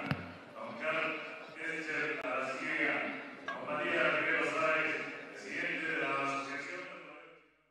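A crowd murmurs in a large open arena.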